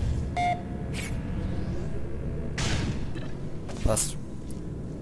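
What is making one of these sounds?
A portal gun fires with a sharp zap.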